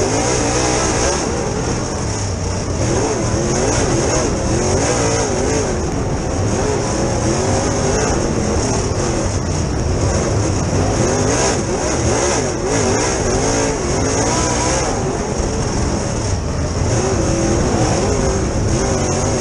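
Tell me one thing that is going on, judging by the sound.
A race car engine roars loudly up close, revving up and down.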